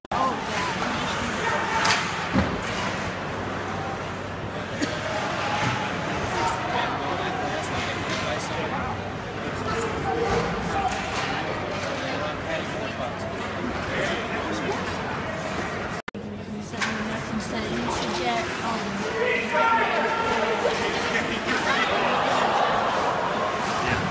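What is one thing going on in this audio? A crowd cheers and chatters throughout a large echoing arena.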